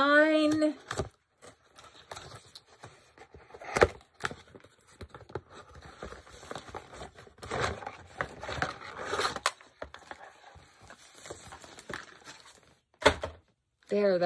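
Cardboard and plastic rustle and scrape as a box is handled.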